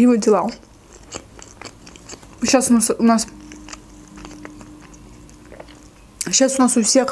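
A young woman chews food with soft wet clicks.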